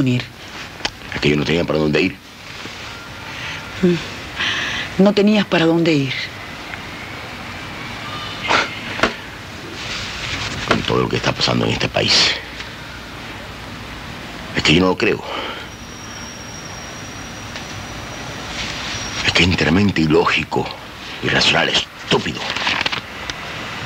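A man speaks in a low, calm voice close by.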